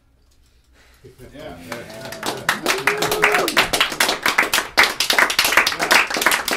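A saxophone plays a lively melody.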